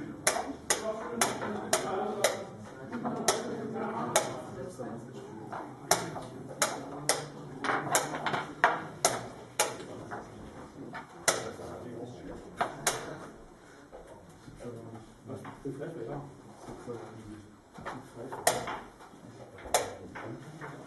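Wooden chess pieces clack onto a wooden board in rapid blitz moves.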